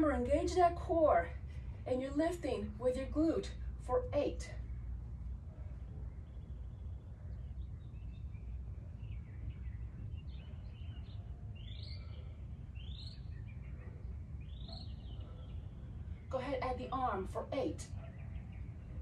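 A woman speaks calmly, as if giving instructions, close to the microphone.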